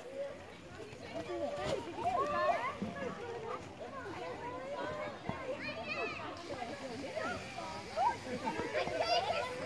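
Children and adults chatter and call out nearby outdoors.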